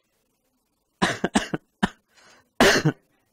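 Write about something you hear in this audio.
A young man laughs loudly into a clip-on microphone.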